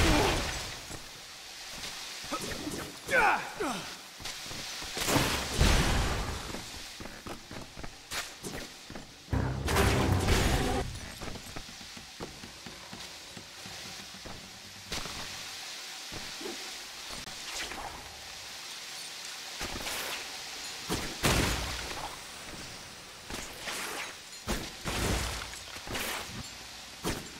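Webs shoot out with quick whooshing zips.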